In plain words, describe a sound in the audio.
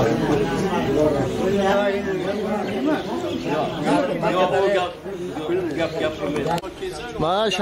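A man speaks calmly and steadily nearby.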